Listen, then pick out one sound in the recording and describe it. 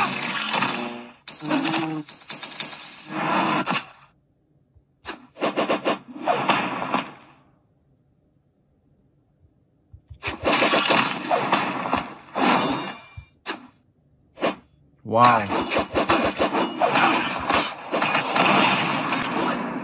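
Sword-fighting sound effects from a mobile action game play in bursts from a tablet.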